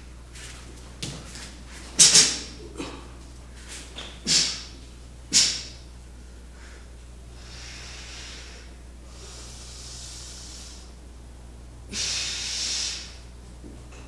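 A cotton uniform snaps sharply with quick punches and arm movements.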